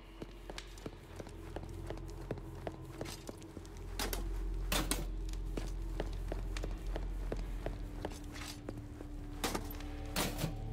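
Footsteps tap steadily across a hard stone floor.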